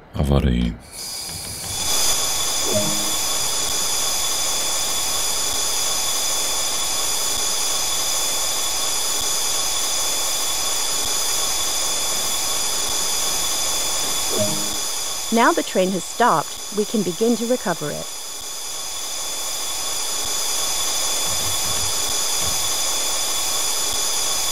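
An electric locomotive hums steadily.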